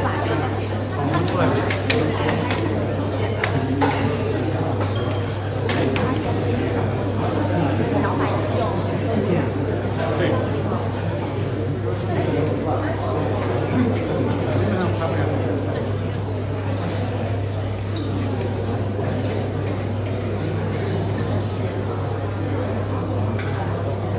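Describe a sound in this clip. A crowd of men and women chatters all around in an echoing hall.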